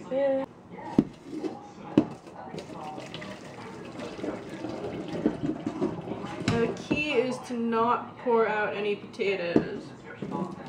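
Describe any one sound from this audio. A metal pot clanks against a sink.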